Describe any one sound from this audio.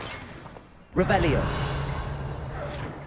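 A spell crackles and bursts with a sharp magical whoosh.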